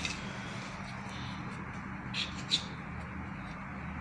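A knife cuts through soft dough.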